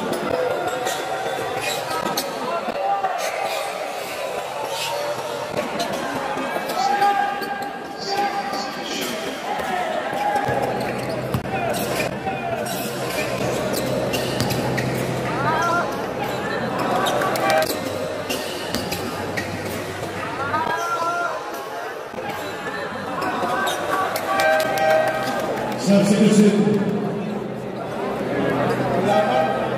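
A large crowd cheers and murmurs in an echoing hall.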